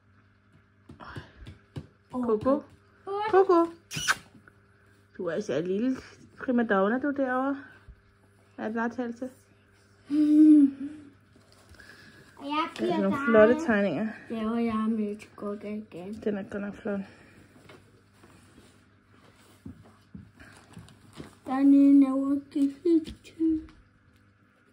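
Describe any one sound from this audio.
A young girl talks cheerfully close by.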